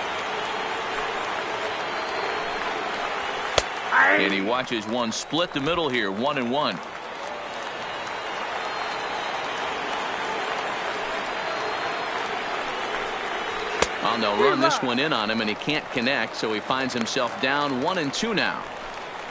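A large crowd murmurs steadily.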